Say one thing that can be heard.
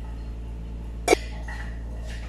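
A metal pot lid clatters.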